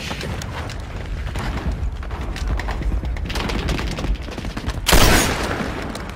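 Rifle shots crack loudly close by.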